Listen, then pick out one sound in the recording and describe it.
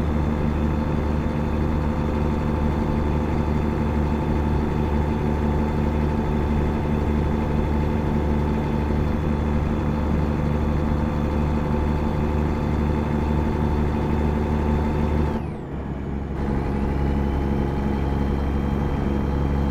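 A heavy truck engine drones steadily, dipping briefly once before picking up again.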